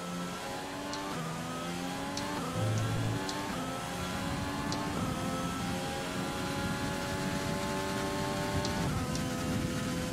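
A racing car engine whines loudly, revving up through the gears with quick drops at each shift.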